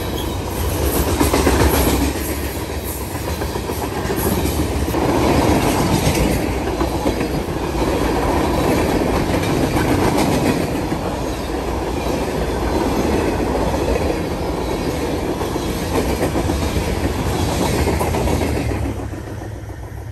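Wheels squeal and clank over rail joints.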